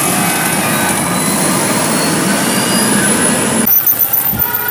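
A heavy truck rolls past with a deep rumble.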